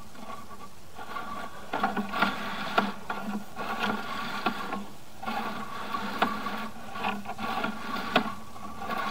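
A small motorized crawler whirs and rattles as it rolls along inside a pipe.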